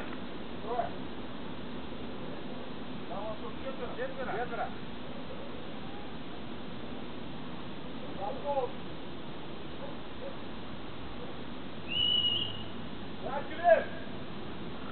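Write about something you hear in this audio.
A man shouts outdoors.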